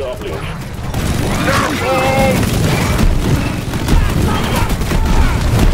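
A futuristic gun fires rapid shots.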